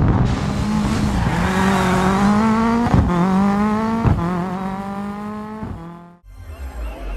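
A rally car engine revs hard and shifts gears as the car speeds past.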